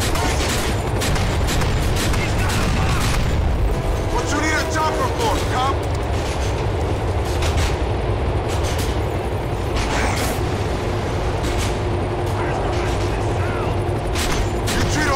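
A train rumbles steadily along its tracks.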